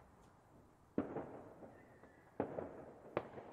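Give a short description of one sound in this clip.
Fireworks burst with loud booms, followed by crackling.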